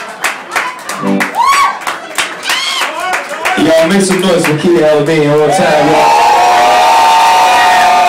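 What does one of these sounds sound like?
A young woman shouts and cheers excitedly nearby.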